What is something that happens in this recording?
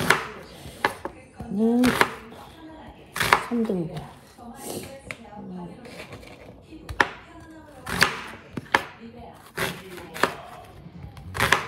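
A knife blade thuds against a wooden cutting board.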